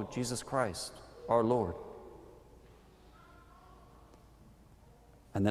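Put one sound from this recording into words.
A man speaks slowly and calmly into a microphone in a large echoing room.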